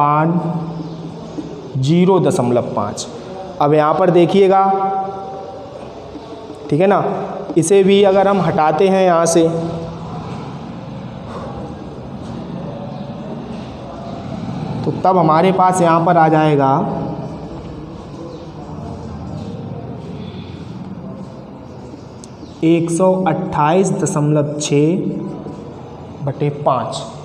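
A man explains in a clear, lecturing voice, close by.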